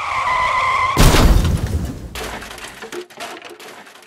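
A car crashes with a loud bang and debris clatters across the road.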